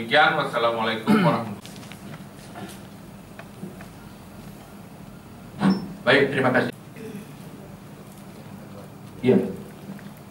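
A man speaks in short bursts with pauses, in a room with some echo.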